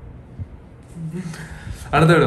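A young man laughs close to a headset microphone.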